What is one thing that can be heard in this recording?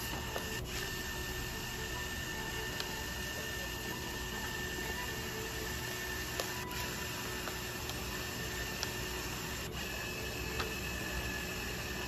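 Paper rustles as printed sheets are handled.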